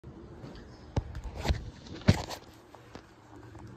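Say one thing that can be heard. A phone knocks and rustles as it is handled.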